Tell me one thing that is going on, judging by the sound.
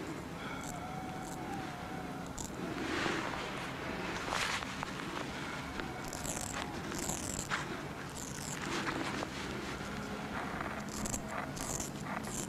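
A razor scrapes softly over a man's stubbly face.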